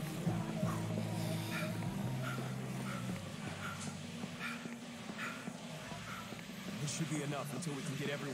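Footsteps run quickly and evenly on pavement.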